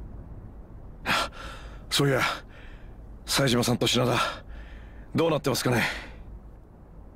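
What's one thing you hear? A man speaks in a low, tired voice.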